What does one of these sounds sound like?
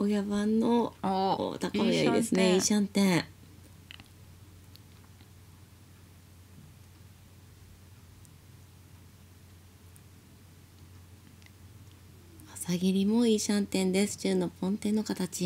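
Mahjong tiles click as they are placed on a table.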